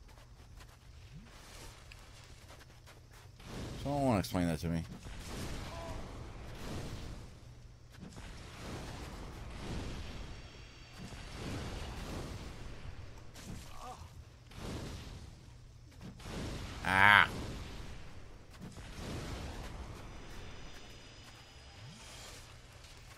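Armoured footsteps crunch on stone.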